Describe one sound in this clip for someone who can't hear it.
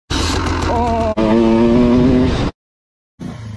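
A dirt bike engine revs up loudly.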